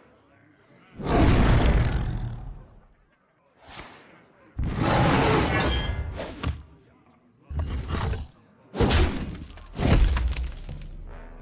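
Magical whooshes and heavy thuds burst out in quick turns.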